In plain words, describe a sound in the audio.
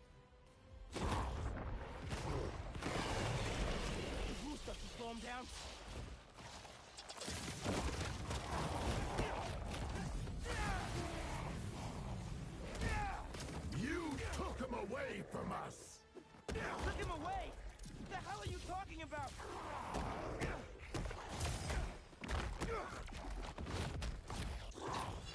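Heavy punches and thuds land in a fast fight.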